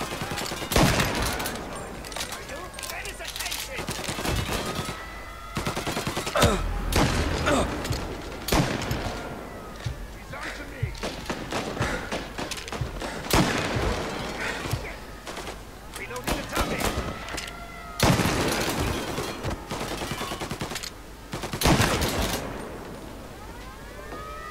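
A shotgun is pumped and reloaded with metallic clacks.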